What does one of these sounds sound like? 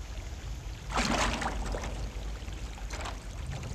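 Water splashes close by.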